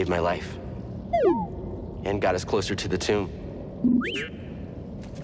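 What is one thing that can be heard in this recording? A small robot beeps and whistles in rising and falling chirps.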